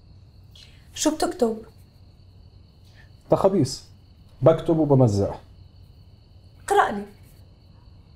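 A woman speaks softly nearby.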